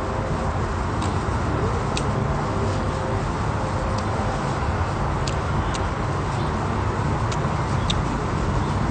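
A paper wrapper crinkles.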